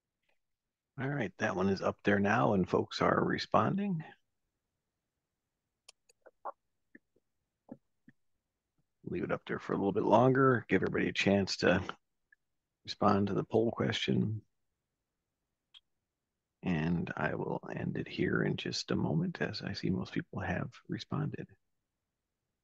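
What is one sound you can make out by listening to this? A man speaks calmly through a microphone on an online call, in bursts with pauses.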